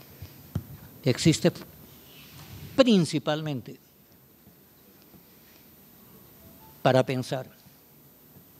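An elderly man speaks calmly into a microphone in a hall, with pauses between phrases.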